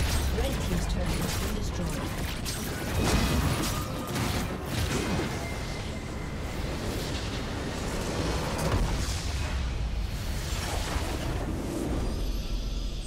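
Spell effects and combat sounds clash and burst in a fast battle.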